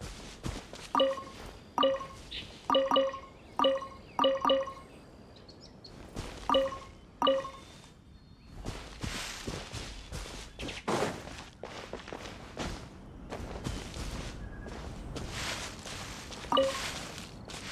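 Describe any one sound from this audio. Short bright chimes ring out as items are picked up.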